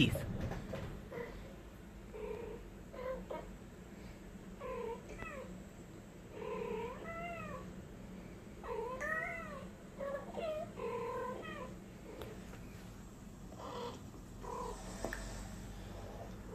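Cats meow and chatter back and forth through a small loudspeaker.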